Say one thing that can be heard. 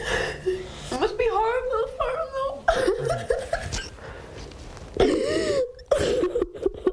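A young woman cries out and squeals close by.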